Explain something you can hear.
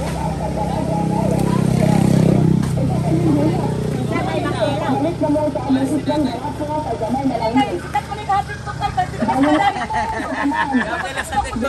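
A truck engine idles with a low rumble nearby.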